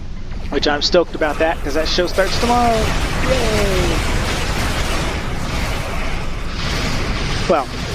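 Laser weapons fire and crackle in bursts.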